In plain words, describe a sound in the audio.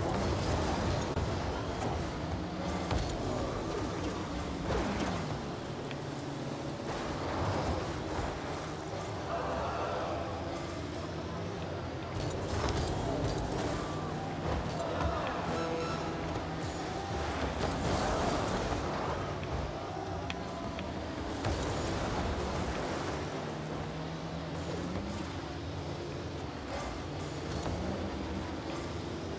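Car engines hum steadily.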